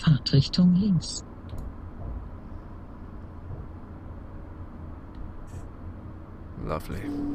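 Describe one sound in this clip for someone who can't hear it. A train rumbles steadily along the rails through a tunnel.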